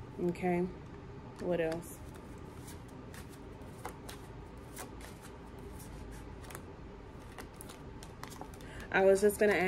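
Playing cards are shuffled with soft, quick flicks.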